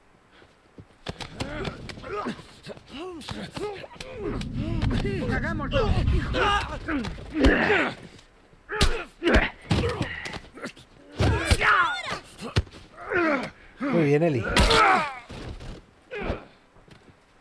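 Heavy blows thud during a struggle.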